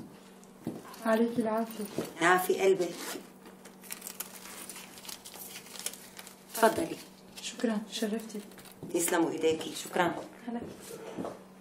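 A second woman answers in a low voice nearby.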